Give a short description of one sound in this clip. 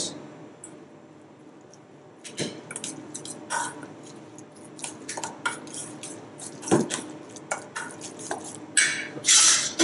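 A spoon scrapes and clinks against a metal bowl while mixing.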